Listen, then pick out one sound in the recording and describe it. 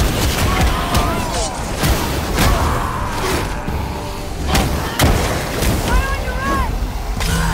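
Heavy blows land with sharp, crunching impacts.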